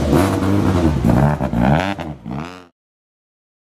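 A rally car engine revs up and down as the car pulls away.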